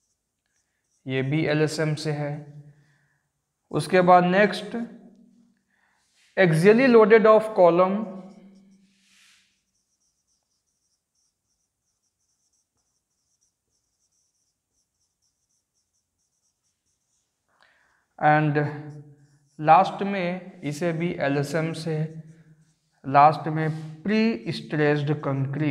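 A man speaks calmly and clearly into a close microphone, pausing between phrases.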